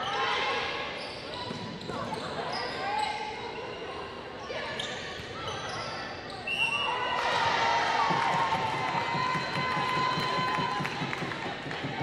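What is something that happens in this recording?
A volleyball is struck with a hard slap.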